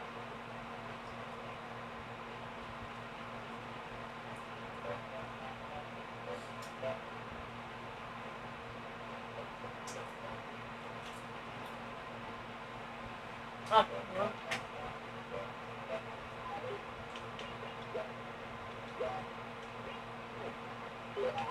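Soft electronic game music and chimes play quietly from a television speaker.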